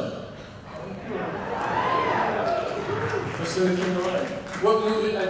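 A man talks calmly into a microphone, heard through loudspeakers in a large room.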